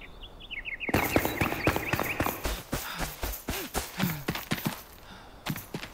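Footsteps tread quickly over grass.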